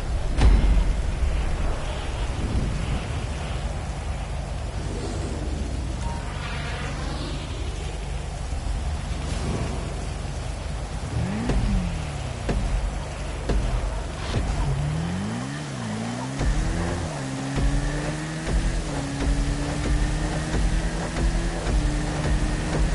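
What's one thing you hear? Rain patters steadily on the road.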